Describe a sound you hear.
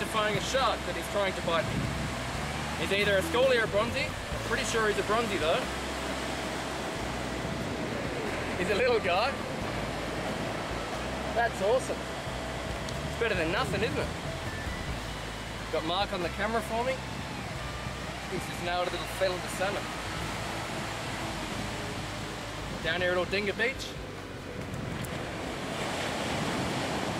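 Waves wash gently onto the beach.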